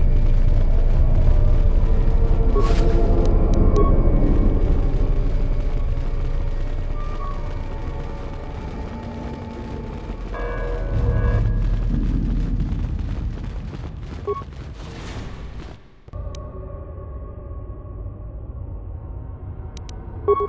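Footsteps tread steadily along a hard floor.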